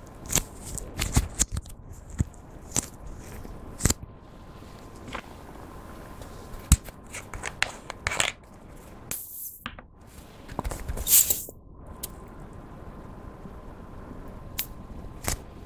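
Plastic crinkles and clicks as hands handle a small tube.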